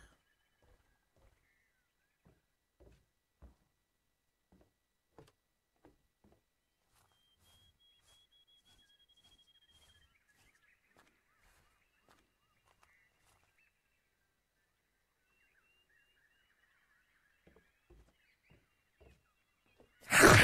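Soft footsteps thud steadily.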